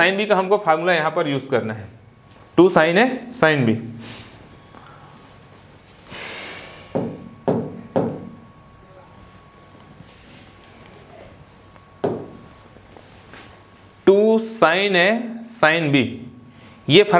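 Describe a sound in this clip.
A man lectures calmly and close, heard through a microphone.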